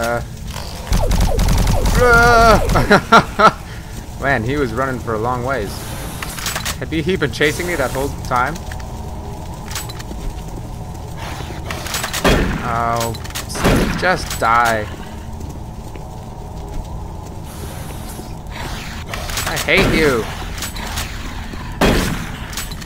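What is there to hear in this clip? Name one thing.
Gunshots bang loudly from a video game.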